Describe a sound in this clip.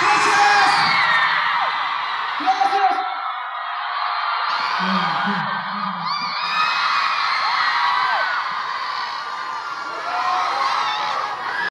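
A crowd cheers and screams loudly close by.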